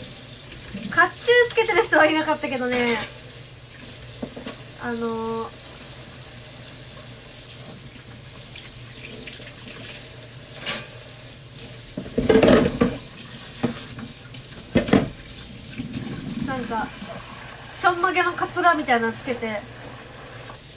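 A young woman talks close to a microphone, softly and casually.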